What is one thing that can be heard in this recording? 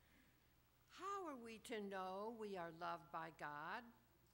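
An elderly woman sings into a microphone.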